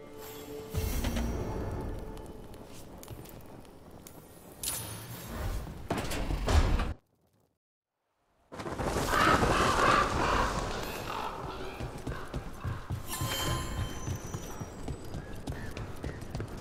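Footsteps tap on a stone floor.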